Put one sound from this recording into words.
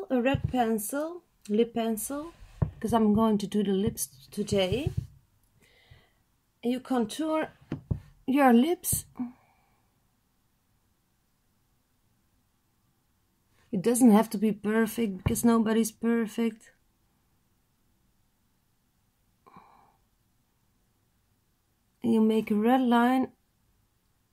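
A young woman talks calmly and close to the microphone, in short bursts.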